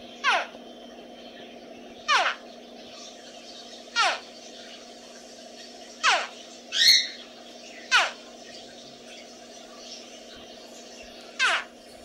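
A baby alligator gives short, high chirping calls that drop in pitch, about every two seconds.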